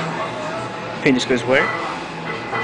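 Heavy weight plates on a barbell clank against a metal rack.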